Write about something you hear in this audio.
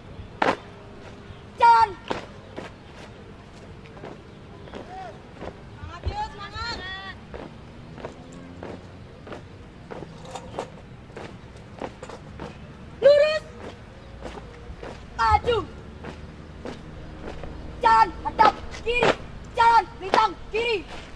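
Shoes stamp on pavement in a steady marching rhythm.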